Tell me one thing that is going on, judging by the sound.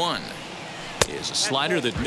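A baseball smacks into a catcher's mitt.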